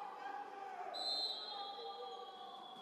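A referee's whistle blows shortly.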